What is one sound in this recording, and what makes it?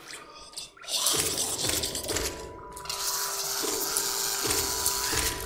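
Electronic game sounds whoosh and crash in a loud burst of fighting.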